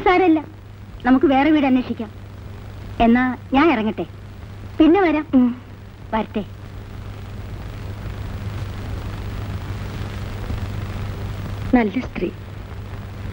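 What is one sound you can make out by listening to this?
A woman speaks calmly, close by.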